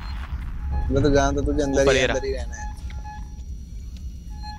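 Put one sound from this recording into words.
A motion tracker beeps softly.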